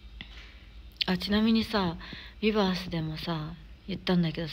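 A young woman speaks close to a phone microphone, with animation.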